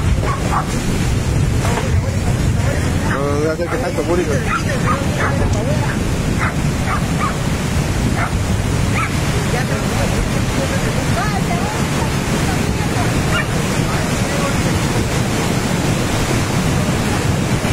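Muddy floodwater rushes and roars down a river channel.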